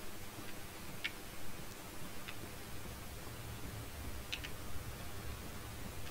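A fire crackles in a hearth.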